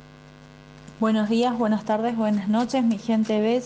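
A woman speaks clearly and with animation.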